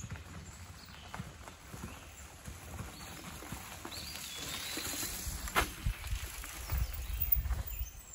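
Bicycle tyres crunch over a dirt track.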